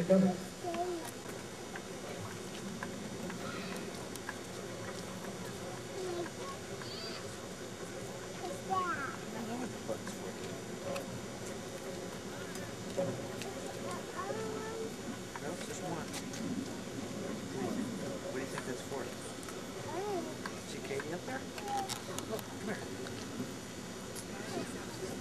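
A crowd of young people chatters and murmurs nearby, outdoors.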